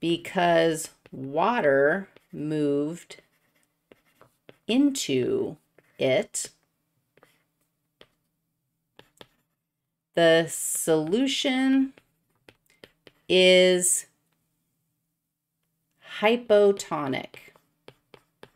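A woman speaks with animation into a close microphone, in short bursts.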